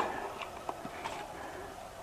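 A trowel slaps wet mortar onto broken bricks.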